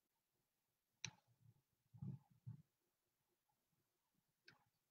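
Small plastic pieces click and tap as they are handled close by.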